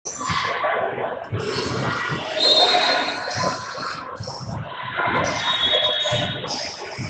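A group of young players shouts and cheers together in a large echoing gym.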